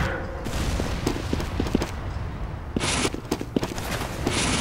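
Footsteps tap quickly on a hard floor.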